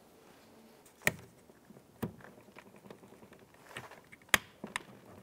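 A plastic connector clicks and snaps as it is pried loose.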